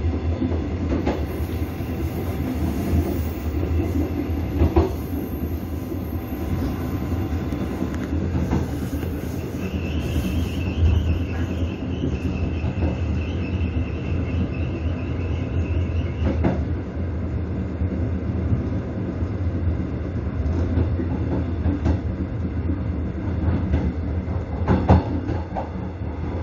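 A train rumbles along the rails.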